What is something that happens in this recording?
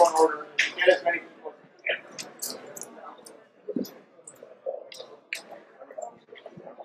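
A crowd murmurs and shuffles in a large hall.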